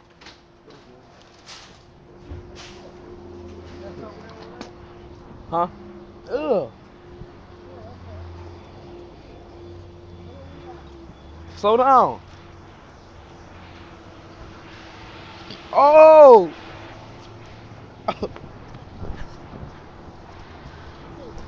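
A teenage boy talks close by, now and then letting out loud, drawn-out calls.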